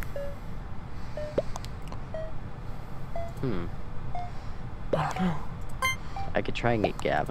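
A short electronic blip sounds repeatedly.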